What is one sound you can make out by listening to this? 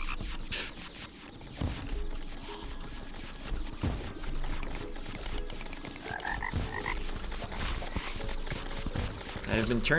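Game blocks crunch and break rapidly as a pickaxe digs.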